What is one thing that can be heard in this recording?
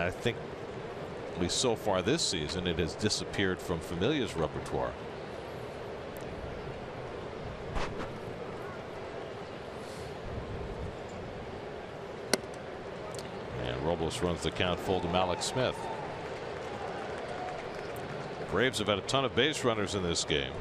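A crowd murmurs steadily in a large open stadium.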